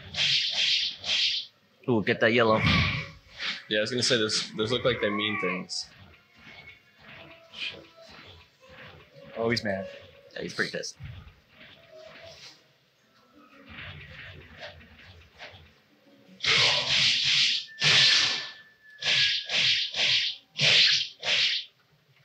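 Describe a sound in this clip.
Swords swish and slash in quick bursts.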